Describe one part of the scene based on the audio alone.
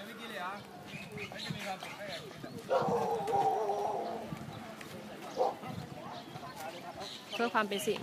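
Several men and women talk quietly nearby outdoors.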